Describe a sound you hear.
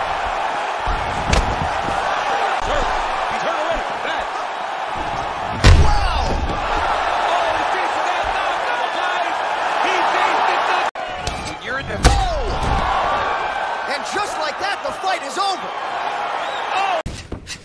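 A crowd roars and cheers loudly throughout.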